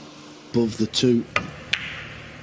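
A cue tip strikes a pool ball.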